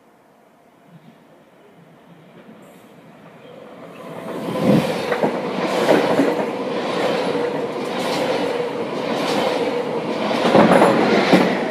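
A train approaches and roars past close by, wheels clattering over the rail joints.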